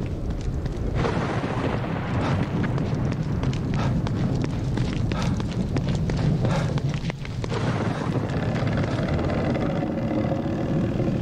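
Footsteps run quickly on wet pavement.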